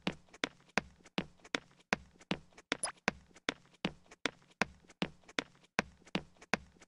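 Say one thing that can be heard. Sword blows strike in a quick, steady rhythm.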